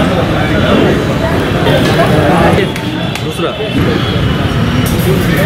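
A crowd of men chatter outdoors.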